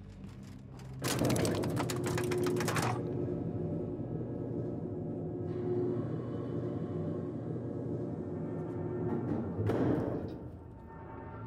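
A lift rumbles and hums loudly as it moves.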